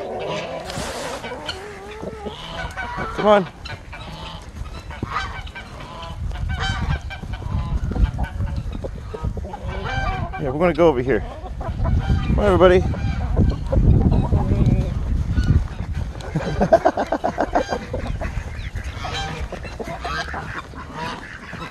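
Chickens cluck and crow close by.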